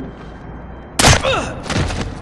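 A silenced gun fires once.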